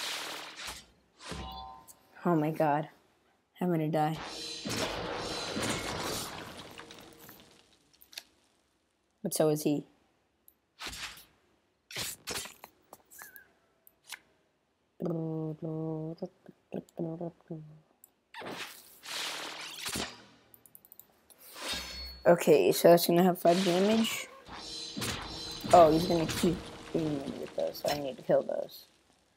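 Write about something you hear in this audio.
Game sound effects chime and whoosh as pieces move and cards are played.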